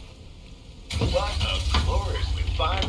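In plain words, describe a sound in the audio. A truck engine starts up and rumbles loudly.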